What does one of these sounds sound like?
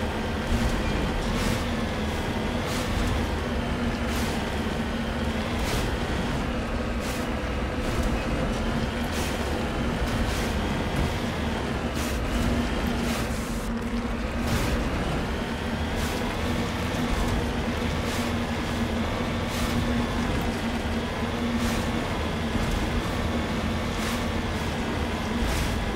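A vehicle engine hums steadily, its pitch rising and falling as it drives over rough ground.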